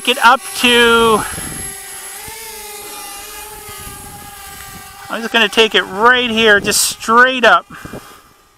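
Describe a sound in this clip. A small drone whines and hums as it lifts off and flies close by, its pitch rising and falling.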